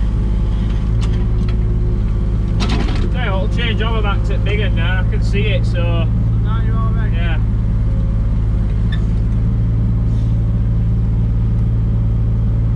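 An excavator engine rumbles steadily close by.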